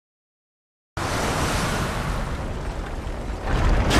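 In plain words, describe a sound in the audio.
A burst of magical energy roars and crackles.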